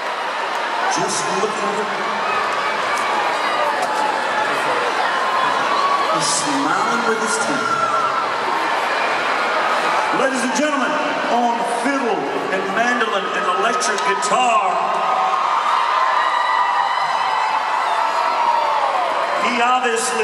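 A man sings into a microphone on a live stage.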